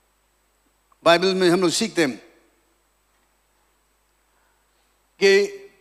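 An elderly man preaches forcefully into a microphone, with long pauses between phrases.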